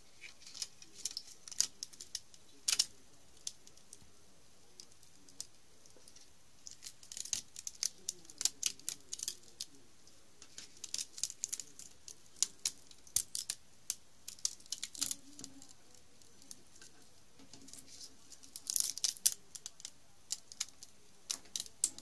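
Brittle wire snaps and crackles with sharp clicks.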